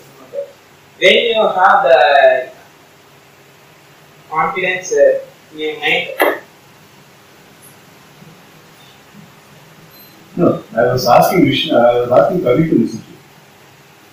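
A young man speaks loudly in short bursts.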